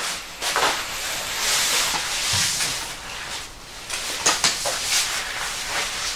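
A plastic sheet crinkles as a man crawls over it.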